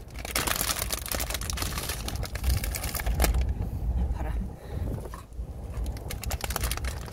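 A plastic wrapper crinkles and rustles close by.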